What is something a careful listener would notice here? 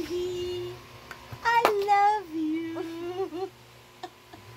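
A young woman laughs and squeals close by.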